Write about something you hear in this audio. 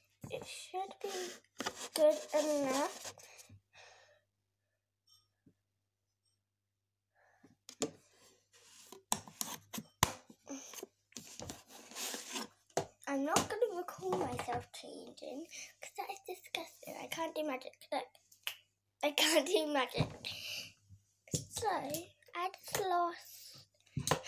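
A young girl talks close by, with animation.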